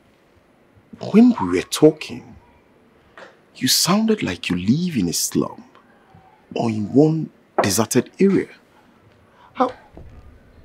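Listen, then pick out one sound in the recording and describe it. A man speaks firmly and with feeling, close by.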